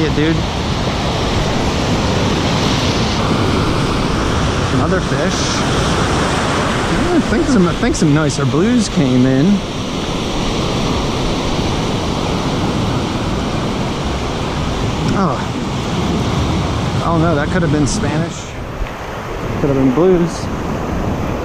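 Waves break and wash up on a beach close by.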